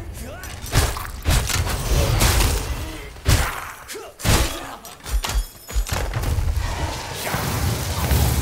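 Weapon strikes land with heavy thuds in a fight.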